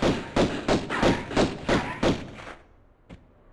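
Pistol shots fire in a quick, loud burst.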